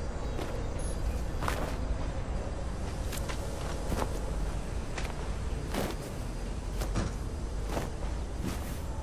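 Wind blows steadily outdoors with a low rumble.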